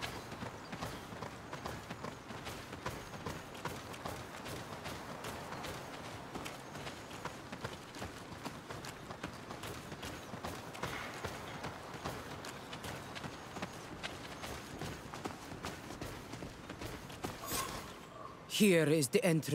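Footsteps run quickly over dirt and leaves.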